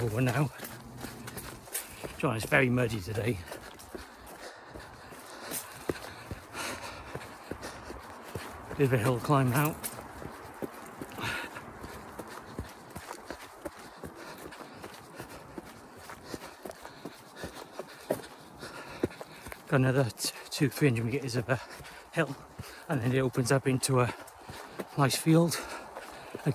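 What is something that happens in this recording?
Footsteps crunch on a forest trail.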